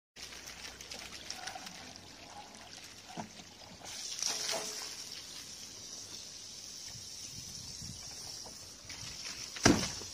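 Water from a hose splashes into a barrel.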